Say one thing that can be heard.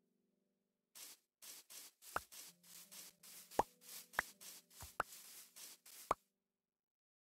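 Footsteps thud softly on grass at a steady walking pace.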